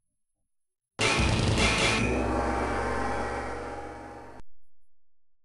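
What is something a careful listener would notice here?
A video game plays a loud crashing jingle with a deep rumble that slowly fades.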